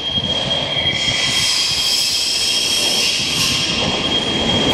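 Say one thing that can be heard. Train brakes squeal briefly as the train slows.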